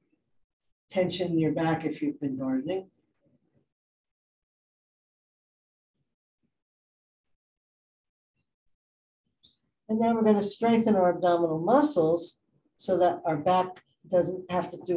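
A woman speaks calmly through a microphone, as if instructing.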